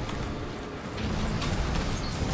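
A large creature crashes down with a heavy blow.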